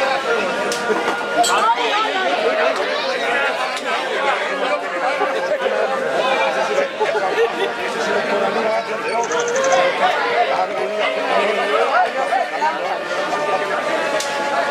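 A large outdoor crowd chatters and calls out.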